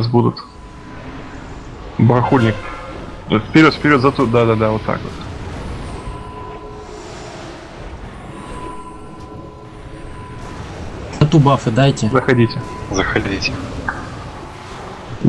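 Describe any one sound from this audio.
Magic spells crackle and whoosh in a fantasy battle.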